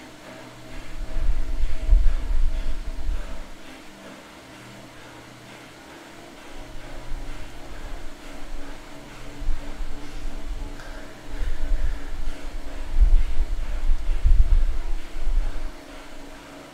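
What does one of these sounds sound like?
A man breathes heavily into a nearby microphone.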